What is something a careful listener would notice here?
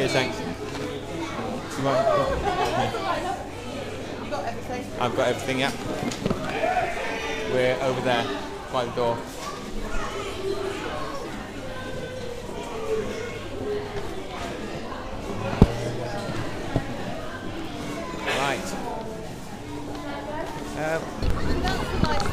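A crowd of people chatter indoors.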